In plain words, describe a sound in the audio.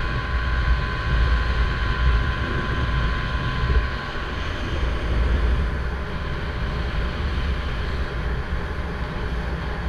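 A boat's motor hums steadily.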